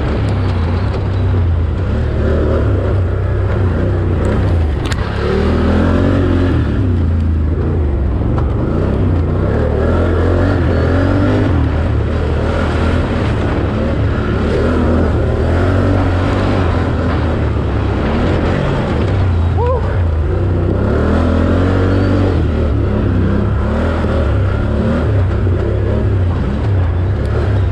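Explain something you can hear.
An off-road vehicle engine roars and revs up and down close by.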